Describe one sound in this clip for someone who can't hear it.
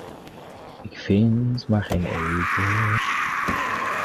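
A car engine cranks but fails to start.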